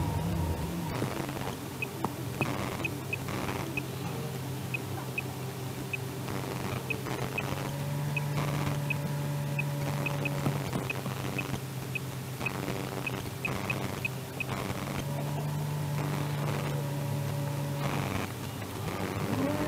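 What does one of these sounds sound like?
A car engine idles quietly while the car stands still.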